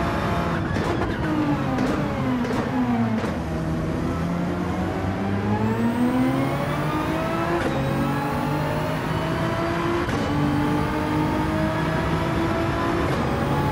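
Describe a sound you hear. A racing car engine roars, dropping low as the car slows and then climbing steadily through the gears.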